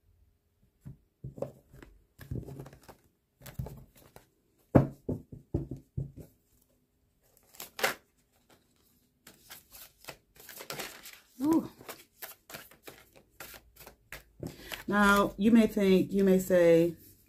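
Cards tap and slide on a soft tabletop.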